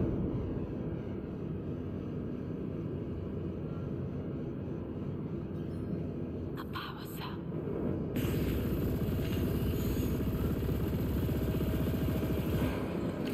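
A spacecraft engine rumbles steadily.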